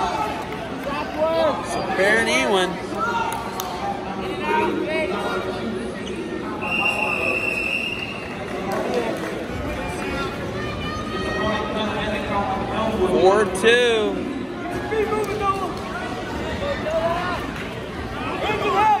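A crowd in a large echoing gym shouts and cheers.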